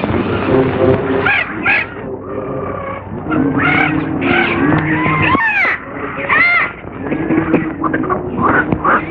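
Monkeys screech and chatter close by.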